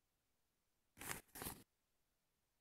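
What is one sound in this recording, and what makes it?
A short whooshing game sound effect plays twice.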